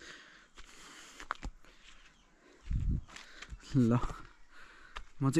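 Footsteps crunch on a dry, grassy path.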